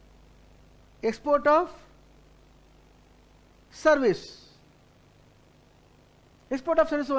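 A middle-aged man speaks calmly into a microphone in short phrases.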